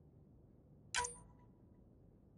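A short electronic menu click sounds once.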